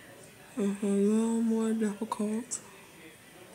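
A young woman speaks close by in a drawn-out, sing-song voice.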